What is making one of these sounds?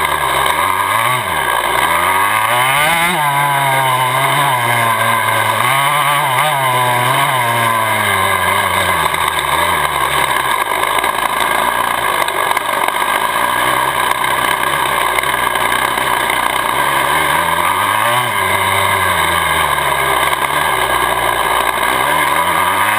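A dirt bike engine revs up and down close by.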